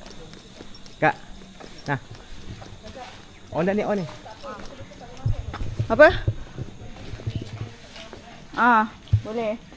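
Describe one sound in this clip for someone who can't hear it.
Young people talk and call out nearby.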